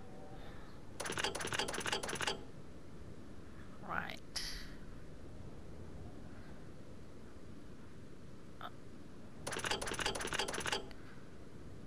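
A stone dial turns with a rapid clicking rattle.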